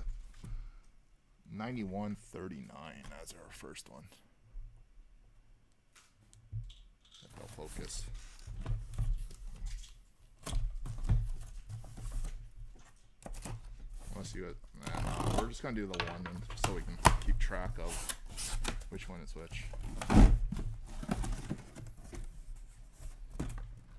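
Cardboard boxes rub, scrape and thump as they are handled.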